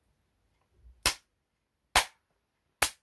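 A man claps his hands loudly close by, a few times.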